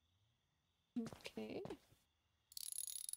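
A young woman speaks briefly and calmly into a nearby microphone.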